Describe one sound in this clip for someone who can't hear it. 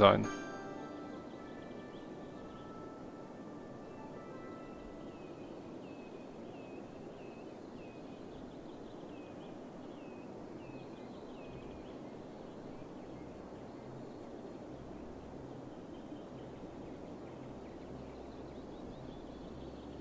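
Road traffic hums steadily in the distance.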